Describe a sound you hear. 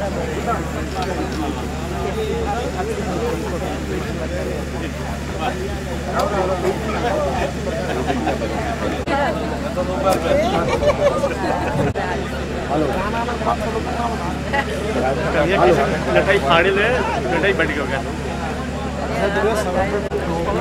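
A crowd of men talk and call out over one another outdoors.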